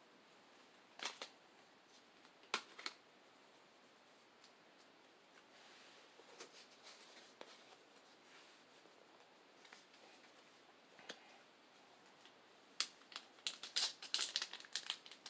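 Stiff cards tap and rustle as a hand sorts through them.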